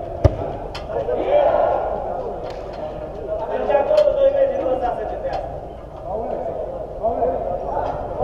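A football is kicked sharply in a large echoing dome.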